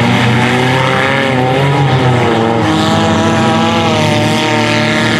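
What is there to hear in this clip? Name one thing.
Car engines roar and rev loudly across a dirt track outdoors.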